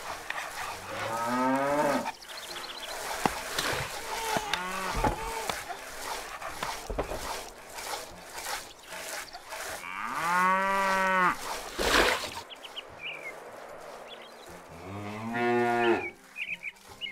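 Cows moo loudly now and then.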